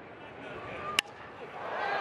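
A bat cracks sharply against a ball.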